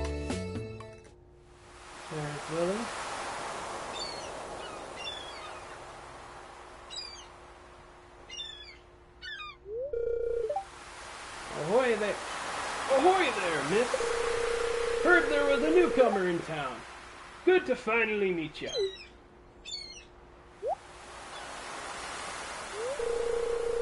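Gentle ocean waves wash steadily.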